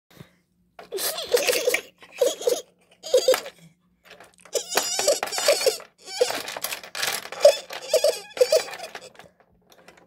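Small plastic toy pieces clack and tap against a hard surface.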